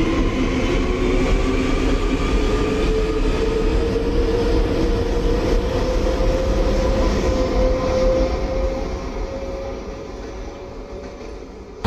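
A subway train pulls away with a rising motor whine and rumbling wheels, then fades into the distance.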